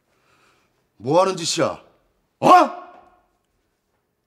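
A man cries out loudly in surprise, close by.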